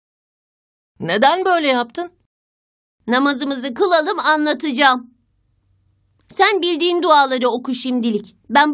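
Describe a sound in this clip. A young boy speaks cheerfully and close by.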